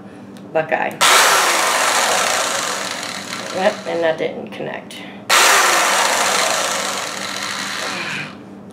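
An electric drill whirs in long bursts.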